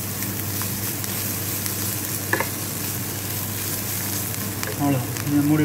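A wooden spoon scrapes and stirs food in a pan.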